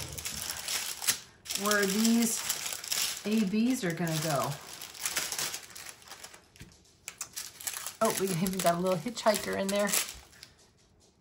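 A plastic bag crinkles and rustles up close.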